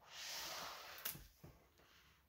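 A hardcover book shuts with a soft thump.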